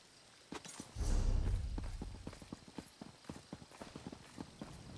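Footsteps patter quickly on a hard path.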